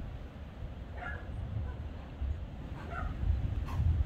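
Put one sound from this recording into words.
A goat bleats in the distance.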